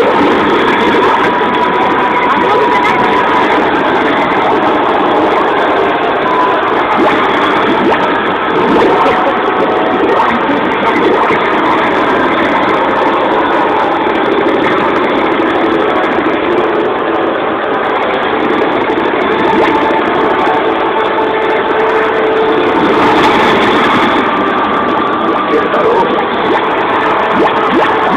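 Loud arcade game music and sound effects play through speakers.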